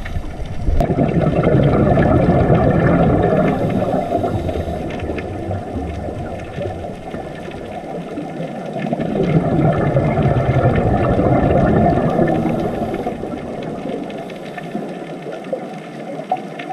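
Scuba air bubbles rush and gurgle underwater in slow, repeated surges.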